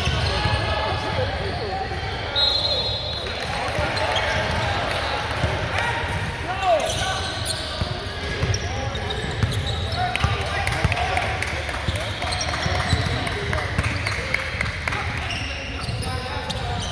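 Young men and women call out and chatter in an echoing hall.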